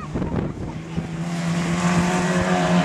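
A stock car engine revs close by as the car drives past on dirt.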